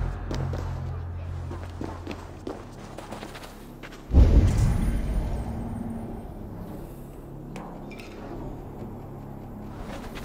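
Footsteps crunch on stone and gravel.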